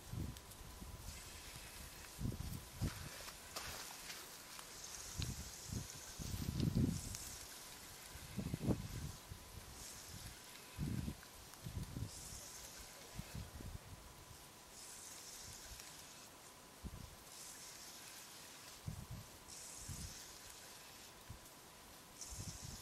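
A spinning fishing reel whirs as its handle is wound in bursts.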